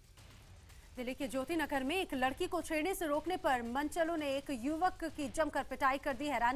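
A young woman reads out the news calmly through a microphone.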